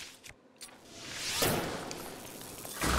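An arrow fires and bursts with a loud whoosh.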